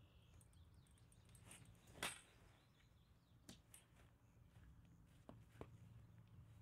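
Tent poles clack and rattle.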